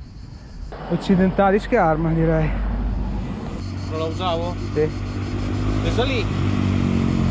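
A man talks close by, calmly.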